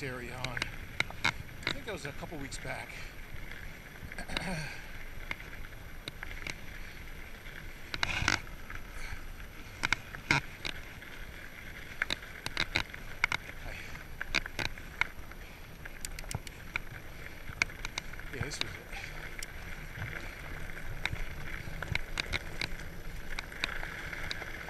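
Bicycle tyres crunch over gravel and then roll on a dirt path.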